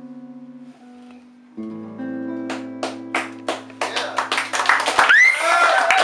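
An acoustic guitar plays a chord that rings out.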